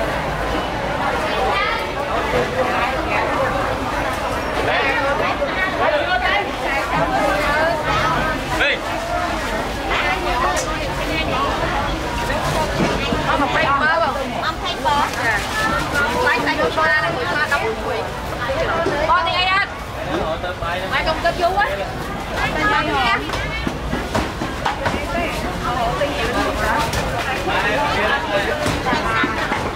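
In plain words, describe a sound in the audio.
Many voices of a busy crowd chatter all around, close by.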